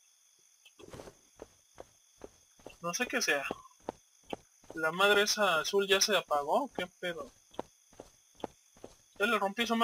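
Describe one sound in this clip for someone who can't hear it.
Footsteps tread at a steady, quick pace.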